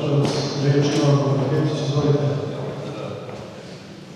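A man speaks through loudspeakers in a large echoing hall.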